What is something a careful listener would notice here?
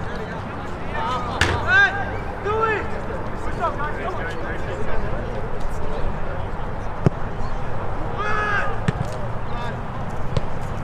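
Young men shout to one another outdoors in the distance.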